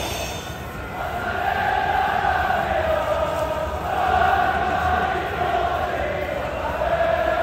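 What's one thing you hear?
A huge crowd sings a chant in unison, echoing through a stadium.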